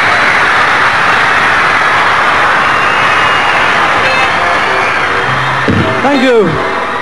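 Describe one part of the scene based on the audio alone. A large crowd screams and cheers loudly in a big hall.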